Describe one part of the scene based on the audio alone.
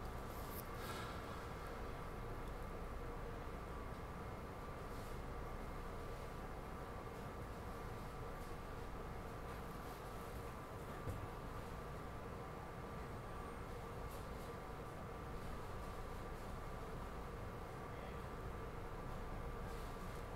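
A train hums and rumbles steadily along its track.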